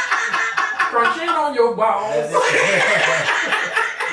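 A man laughs heartily into a microphone, close by.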